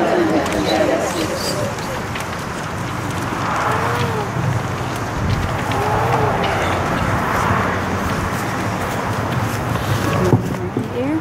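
A woman speaks calmly into a microphone outdoors.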